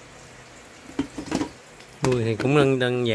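A plastic lid clacks onto a plastic box.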